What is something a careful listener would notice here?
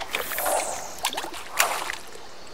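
A fishing reel clicks and whirs.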